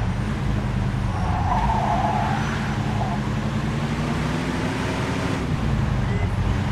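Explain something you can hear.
A car engine hums steadily as the car drives along a street.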